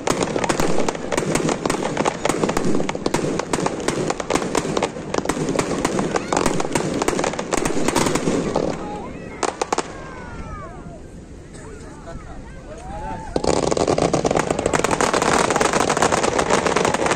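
Fireworks crackle and bang in rapid bursts nearby.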